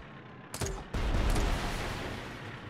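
A video game explosion booms loudly.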